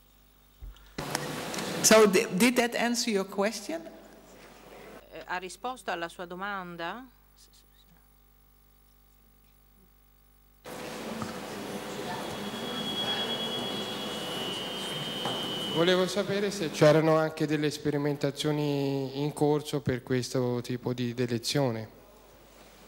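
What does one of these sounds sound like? An elderly woman speaks calmly into a microphone in a large hall.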